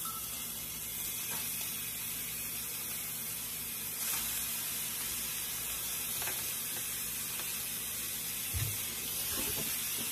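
Soft lumps of raw meat plop into a pan.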